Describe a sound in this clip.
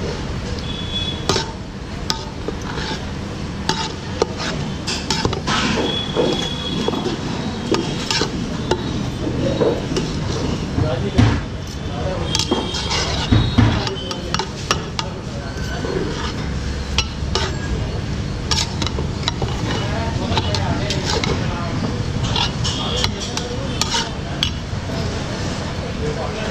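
A metal spatula scrapes and clinks against a metal pot.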